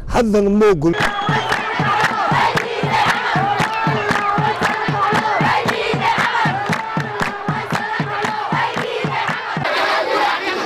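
Hands clap in a steady quick rhythm.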